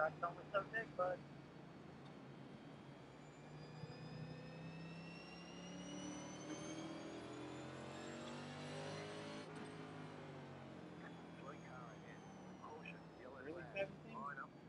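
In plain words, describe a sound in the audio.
Racing car engines roar and rise in pitch as the cars speed up.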